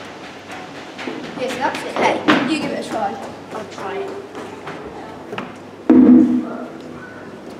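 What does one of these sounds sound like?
A young boy talks and laughs close by.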